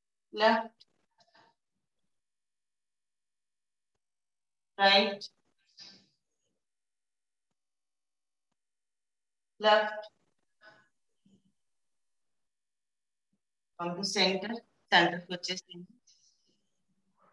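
A woman speaks calmly and close by in short bursts, with long pauses.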